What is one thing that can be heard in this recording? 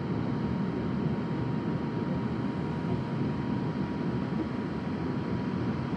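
A ship's engine rumbles steadily as it moves through the sea.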